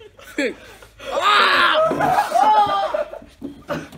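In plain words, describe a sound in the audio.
A young man gasps and shouts in surprise.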